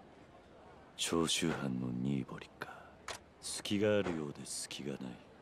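A man speaks calmly, close to a microphone.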